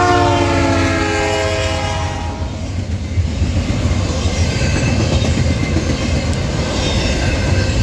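Freight cars clatter and rumble past on the rails.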